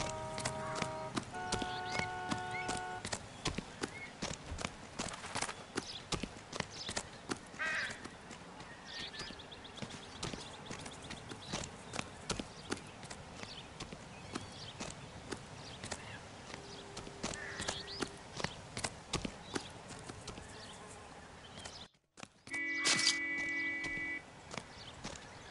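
Footsteps thud quickly on dry ground.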